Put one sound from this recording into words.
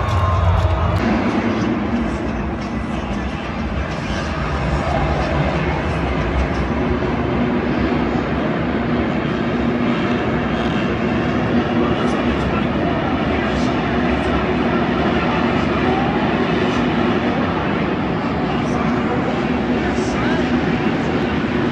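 Dirt bike engines rev and whine around a track.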